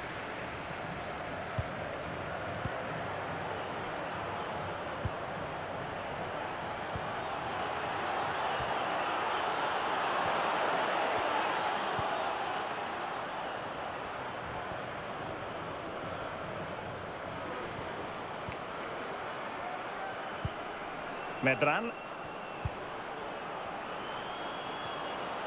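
A large stadium crowd roars steadily, swelling and then fading.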